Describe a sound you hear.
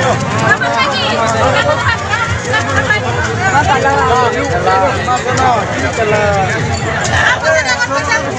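A crowd of men and women talk and call out loudly all around, close by.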